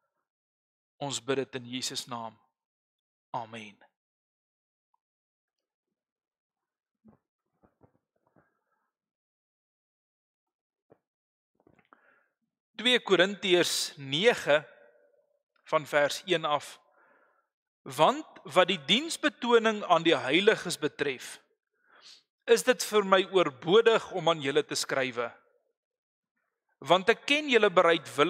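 A man speaks calmly and slowly into a microphone, with pauses.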